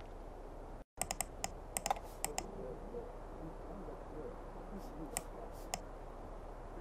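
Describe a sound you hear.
Keys clack as a young man types on a laptop keyboard.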